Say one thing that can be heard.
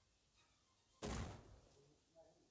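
A cannon shot booms once.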